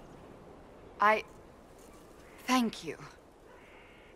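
A woman speaks briefly in a low, quiet voice.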